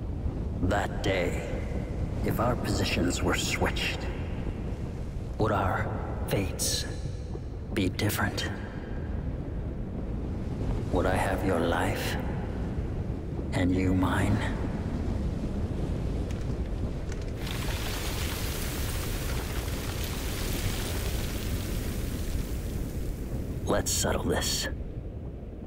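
A man speaks calmly and quietly in a low voice, close by.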